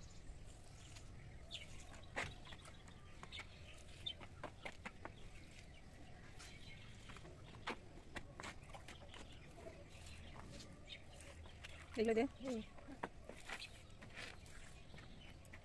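Water splashes softly from a mug onto potted plants.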